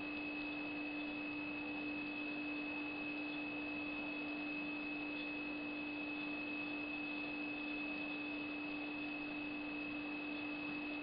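A handheld surgical instrument hums steadily.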